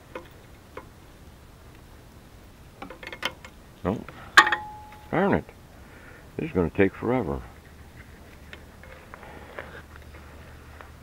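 Metal tools click and tap against metal.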